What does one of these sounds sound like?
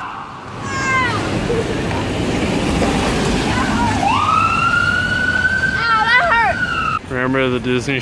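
A siren wails and yelps loudly as an ambulance passes close by.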